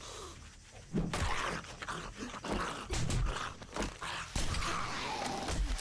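Zombies growl and moan close by.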